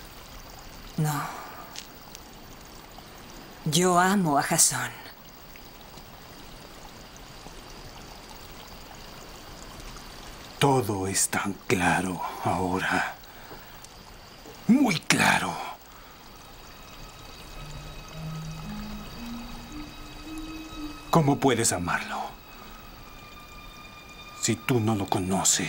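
A man speaks in a low, intense voice close by, with long pauses.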